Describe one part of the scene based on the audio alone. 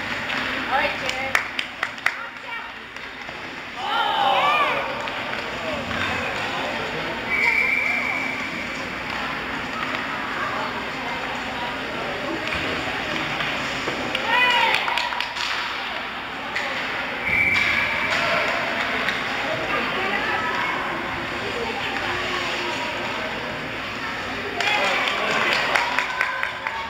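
Skates scrape and swish across ice.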